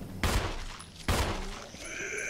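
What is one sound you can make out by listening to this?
A handgun fires loud single shots.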